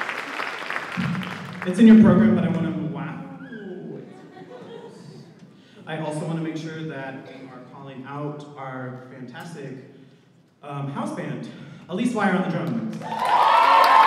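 A man speaks into a microphone in a large echoing hall.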